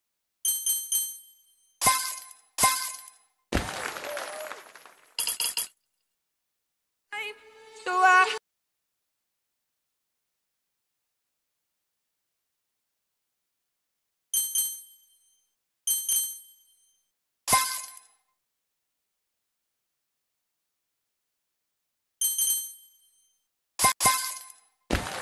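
A bright game chime rings out several times.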